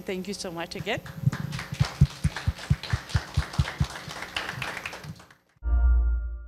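A small audience applauds.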